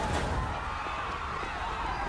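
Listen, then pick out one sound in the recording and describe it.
A young man sings with animation.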